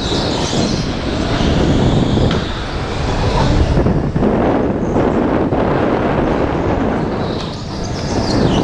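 An electric go-kart motor whines loudly and steadily up close.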